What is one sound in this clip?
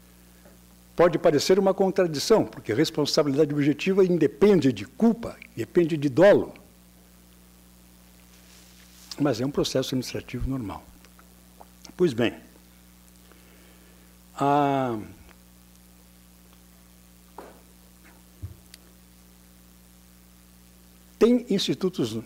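A middle-aged man speaks with animation through a microphone and loudspeakers in a large hall, with pauses.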